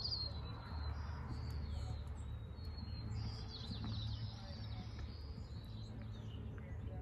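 A horse's hooves thud softly on sand as it trots away.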